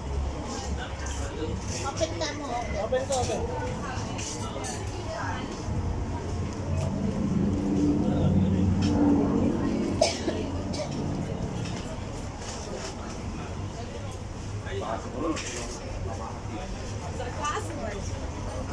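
Many people chatter in the background outdoors.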